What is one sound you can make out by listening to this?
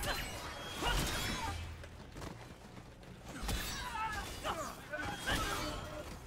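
Laser beams zap sharply.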